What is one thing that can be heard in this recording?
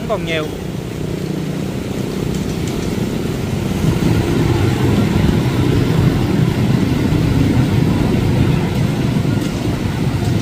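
Motorbike engines hum as riders push through floodwater.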